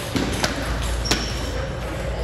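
A table tennis ball clicks sharply off paddles and the table.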